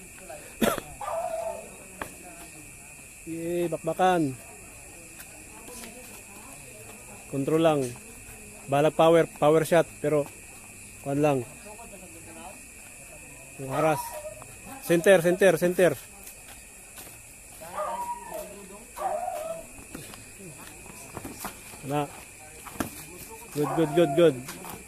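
A man shouts instructions nearby, outdoors.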